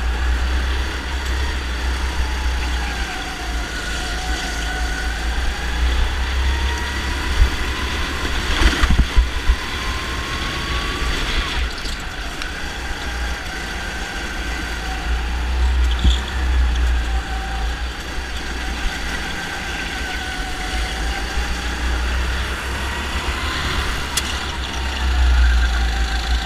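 Other kart engines whine nearby as they race past.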